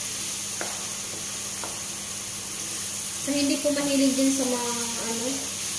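A wooden spatula stirs and scrapes ground meat in a frying pan.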